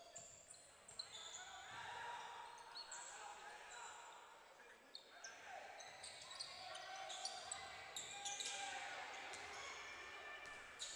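A crowd murmurs and cheers in a large echoing hall.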